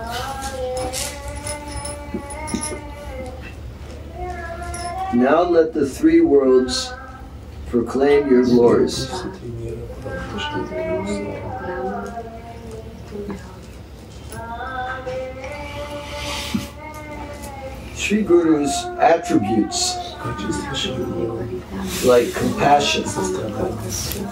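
An elderly man sings a slow, melodic chant close by.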